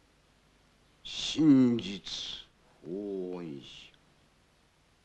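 An elderly man chants in a slow, drawn-out voice.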